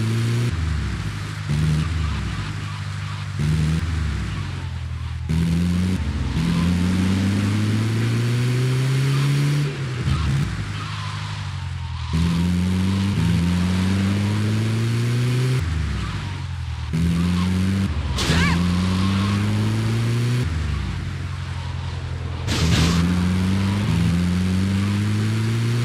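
An engine roars and revs up through the gears, again and again.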